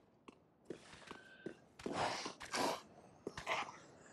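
Wooden barrels and crates smash and clatter apart.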